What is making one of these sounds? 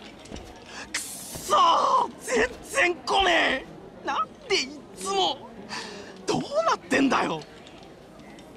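A young man shouts in frustration.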